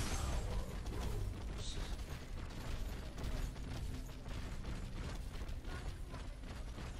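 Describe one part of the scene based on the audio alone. Blows and impacts of combat clash repeatedly.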